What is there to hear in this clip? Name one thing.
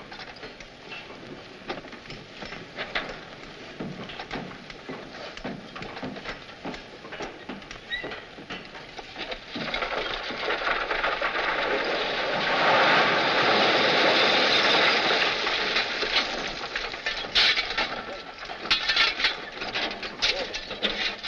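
Horses stamp and shuffle their hooves on dirt.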